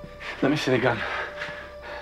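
A man speaks briefly and firmly close by.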